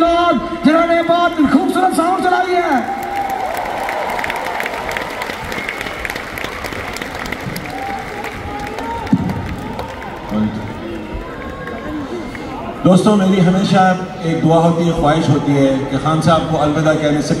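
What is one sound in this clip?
A man sings loudly through loudspeakers in a large echoing hall.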